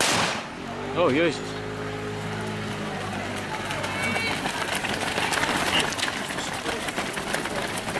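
Many runners' feet patter on pavement as a crowd sets off running.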